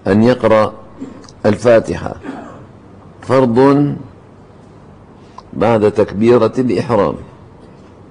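An elderly man speaks calmly and deliberately into a microphone, in short phrases with pauses.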